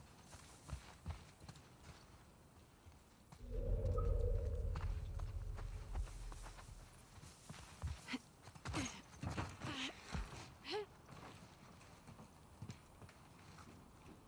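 Footsteps crunch on concrete and gravel.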